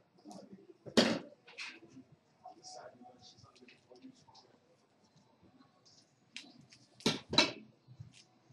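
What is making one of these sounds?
Chairs knock and bump nearby.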